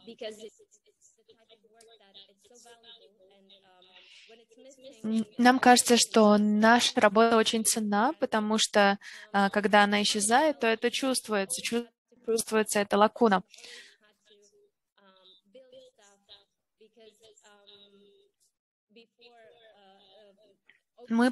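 A young woman speaks calmly through an online call.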